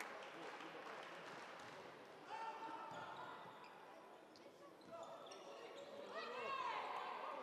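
A volleyball thuds as players hit it.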